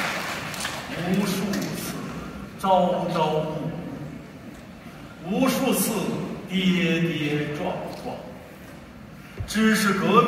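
A man sings into a microphone in a large echoing hall.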